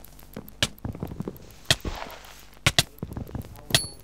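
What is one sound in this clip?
Sharp hits land in quick succession as a sword strikes.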